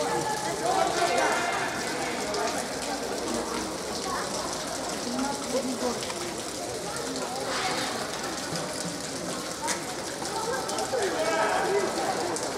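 Young boys shout to each other across the field.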